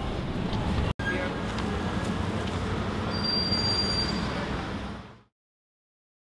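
Traffic and a city crowd murmur steadily outdoors.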